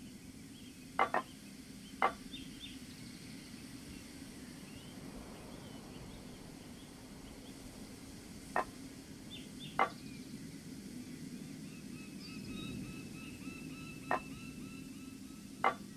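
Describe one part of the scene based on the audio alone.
Metal valve wheels click sharply as they turn.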